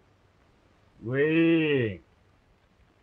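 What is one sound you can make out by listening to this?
A man lets out a long, drawn-out cry.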